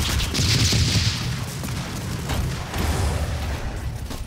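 Fireballs whoosh through the air.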